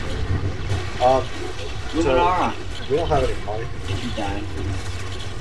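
A large beast roars.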